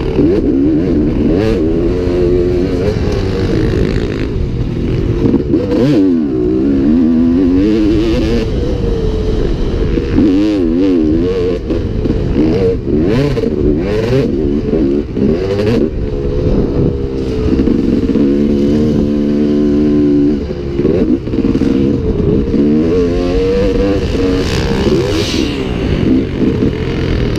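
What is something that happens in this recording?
A dirt bike engine revs up and down close by, loud and rasping.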